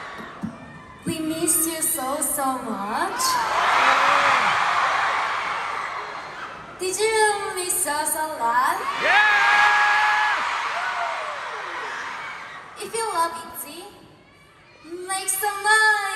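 A young woman speaks playfully into a microphone through loud speakers, echoing in a large arena.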